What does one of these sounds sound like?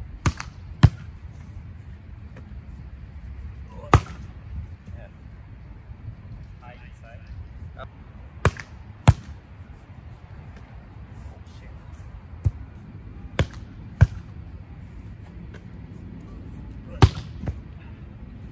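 A volleyball is struck hard with the hands outdoors.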